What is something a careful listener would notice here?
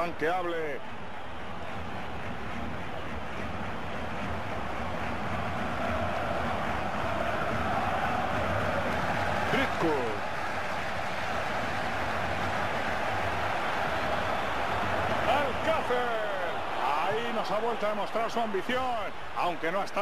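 A large crowd roars steadily in a big stadium, swelling at times.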